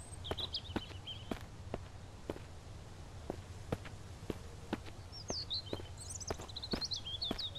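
Footsteps tread steadily through grass and undergrowth.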